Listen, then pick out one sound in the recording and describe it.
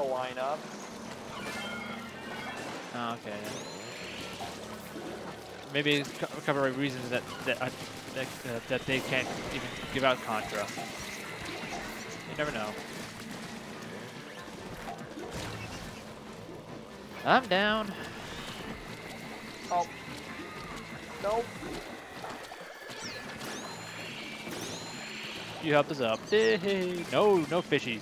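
Game sound effects splash and pop.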